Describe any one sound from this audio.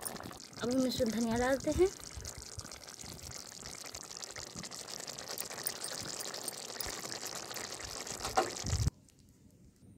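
A thick sauce bubbles and sizzles in a pan.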